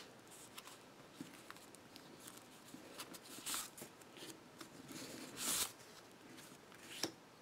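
Stiff paper flaps tap and click.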